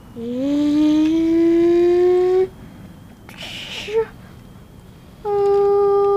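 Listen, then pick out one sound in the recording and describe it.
Plastic toy wheels roll softly over carpet.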